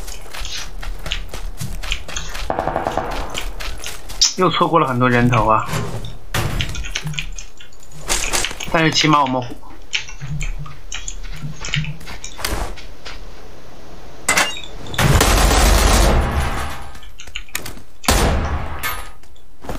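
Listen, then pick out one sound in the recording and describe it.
Quick footsteps patter across the ground.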